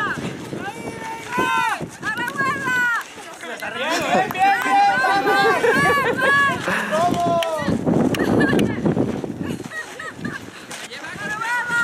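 A group of women and children shout and cheer excitedly outdoors.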